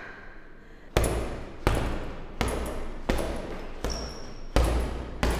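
Fists thud heavily against a punching bag in a steady rhythm.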